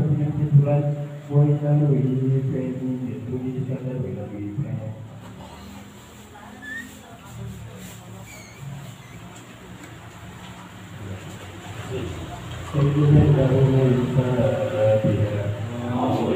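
A group of men chant together in unison.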